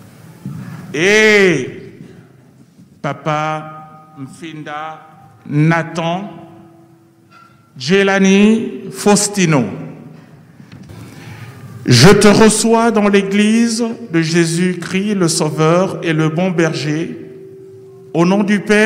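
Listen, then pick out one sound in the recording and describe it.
An older man speaks loudly through a microphone in a drawn-out, chanting voice.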